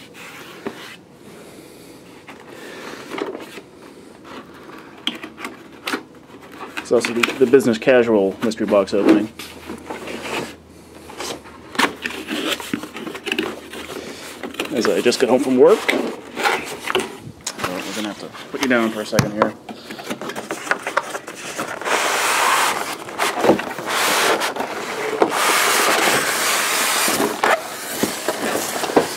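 A cardboard box scrapes and rustles as hands handle it.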